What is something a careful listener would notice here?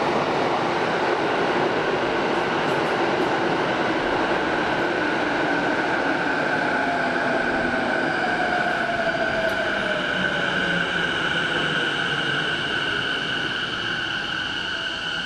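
Train brakes squeal with a high, steady whine as the train slows.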